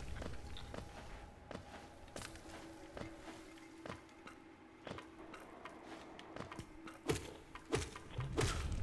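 Light footsteps tap quickly over hard ground.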